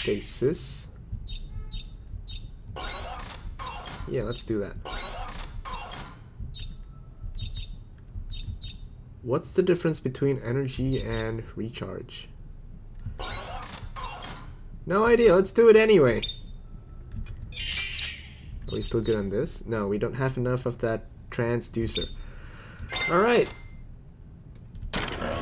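Short electronic blips sound as a menu selection moves.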